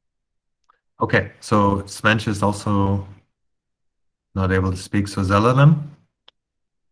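A man speaks calmly over an online call, close to the microphone.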